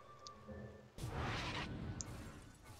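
A magic spell bursts with a crackling whoosh.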